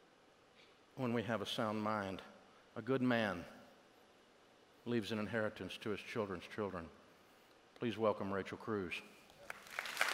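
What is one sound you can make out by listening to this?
A middle-aged man speaks calmly into a headset microphone.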